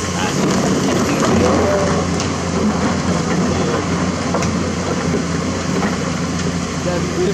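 A hydraulic excavator's diesel engine rumbles under load.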